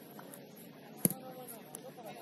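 A soccer ball is kicked with a sharp thump.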